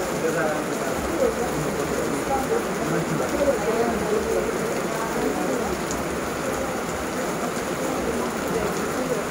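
Wind gusts through trees and shakes the leaves.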